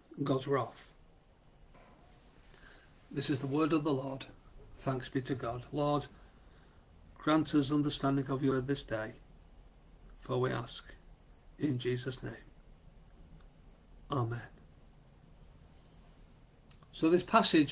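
A middle-aged man speaks calmly in short phrases with pauses, heard close through a microphone on an online call.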